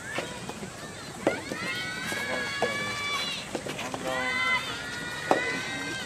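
Young players shout long, drawn-out calls outdoors.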